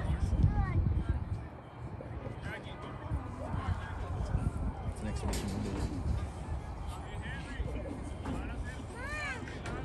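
Young players shout and call out to each other across an open outdoor field.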